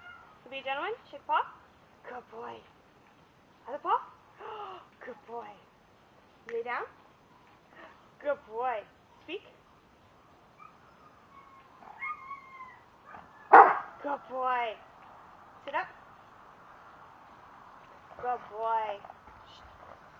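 A husky howls and yowls in short, rising and falling calls.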